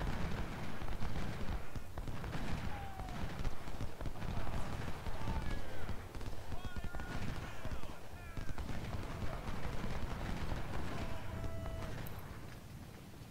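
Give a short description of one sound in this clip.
Distant musket fire crackles and rumbles in a battle.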